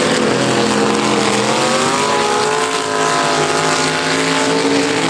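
Car engines roar and rev loudly outdoors.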